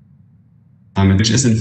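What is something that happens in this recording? A young man speaks calmly through a microphone in an online call.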